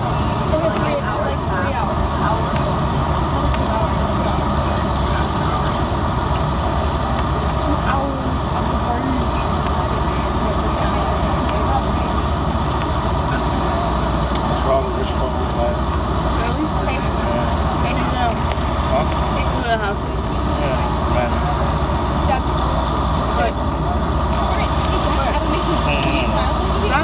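A car drives along a road, heard from inside with its engine and tyres humming.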